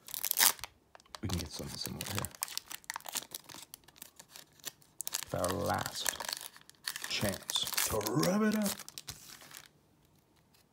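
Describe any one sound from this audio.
A foil wrapper crinkles and rustles between fingers.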